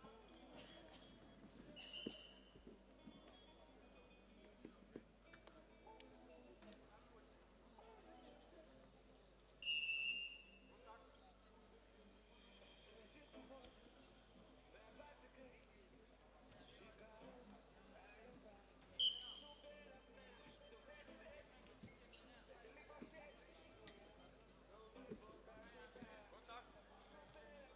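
Wrestlers' feet thump and shuffle on a mat.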